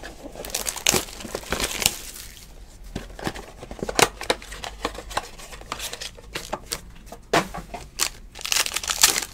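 Plastic wrapping crinkles and rustles as hands tear open a pack.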